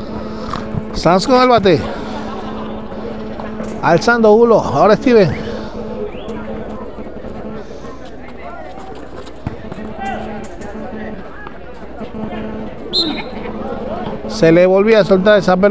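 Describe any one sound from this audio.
Young men shout loudly during play.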